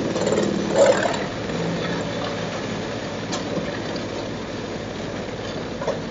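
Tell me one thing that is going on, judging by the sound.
A wood chipper engine roars steadily.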